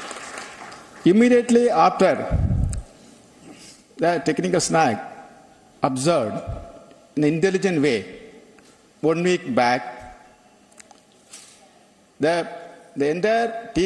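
A man speaks into a microphone over loudspeakers in a large hall, in slow, measured phrases.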